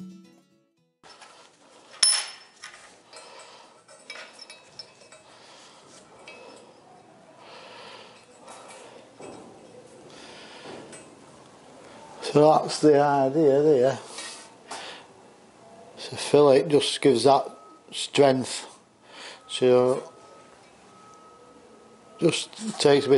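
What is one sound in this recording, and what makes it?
Metal parts clink and scrape under a man's hands.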